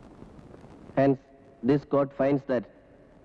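A man speaks loudly in short bursts.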